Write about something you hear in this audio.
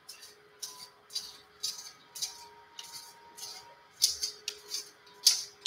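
A brush scrapes in short, rhythmic strokes.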